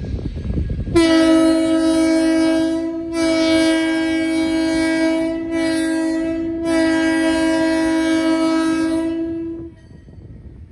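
A locomotive horn blares loudly in long blasts.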